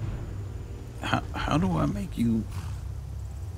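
A horse whinnies loudly nearby.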